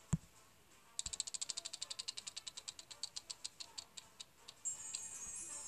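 A prize wheel ticks rapidly as it spins and slows down.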